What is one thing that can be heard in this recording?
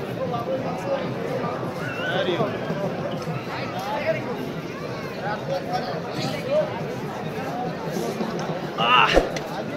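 A crowd of men and women chatter and call out all around, outdoors.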